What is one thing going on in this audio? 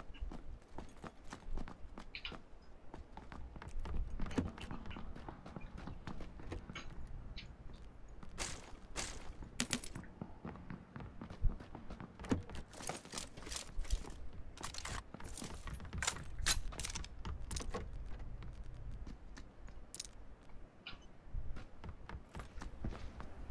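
Footsteps shuffle across a wooden floor indoors.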